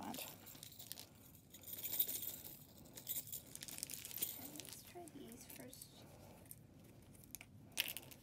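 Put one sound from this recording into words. Small plastic pieces click together.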